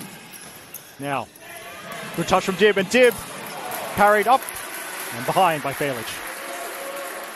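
Spectators shout and cheer loudly.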